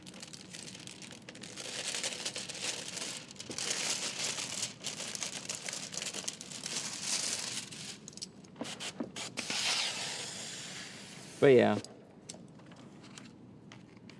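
Hands rub and squeak against glass.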